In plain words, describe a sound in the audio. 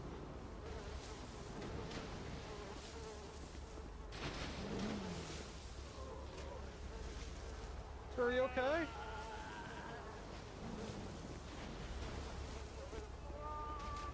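Trash rustles as someone rummages through a dumpster.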